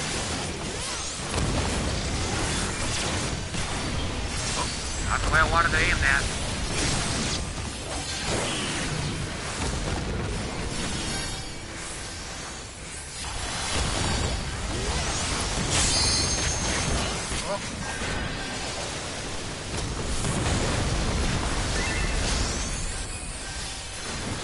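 Game battle effects crash and clang.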